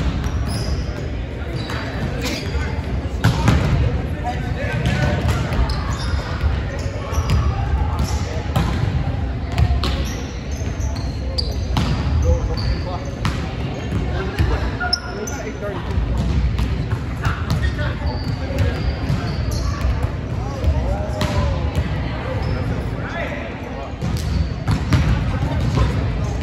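A volleyball is struck with sharp slaps, echoing in a large hall.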